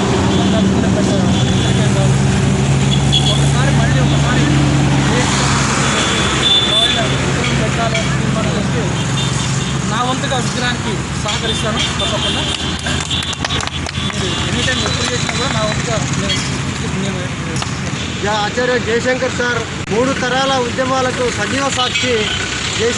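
A middle-aged man speaks outdoors to a microphone with animation.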